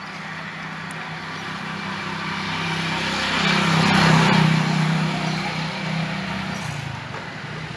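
A motorcycle engine hums along the road and passes by.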